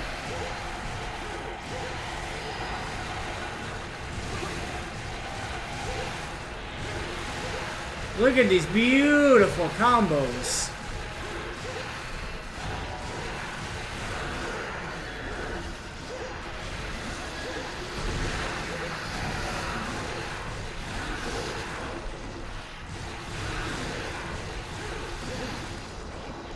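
Swords clash and slash repeatedly against a monster.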